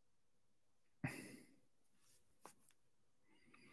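Clothing rustles as a man moves his arms.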